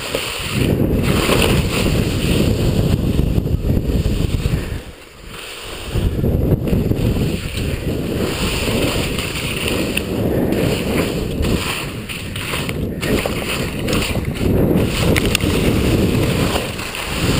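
Wind roars loudly past the microphone.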